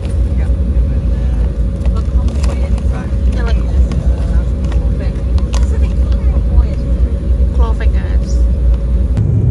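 A crisp packet rustles and crinkles close by.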